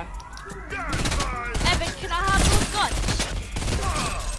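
Rapid gunfire rattles in a quick burst.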